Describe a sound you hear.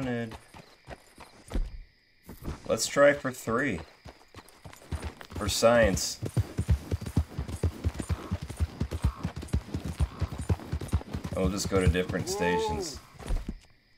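Hooves clop on a dirt path.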